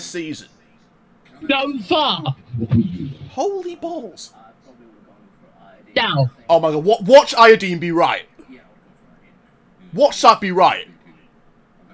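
A young man speaks casually into a microphone in short bursts.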